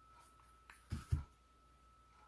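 A glue gun is set down on a table with a soft knock.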